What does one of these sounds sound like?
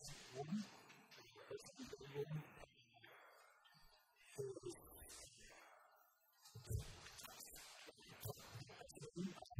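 A man speaks calmly through a microphone in a large room, with pauses.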